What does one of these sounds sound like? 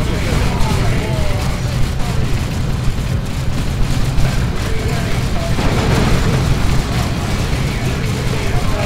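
Explosions rumble low and heavy.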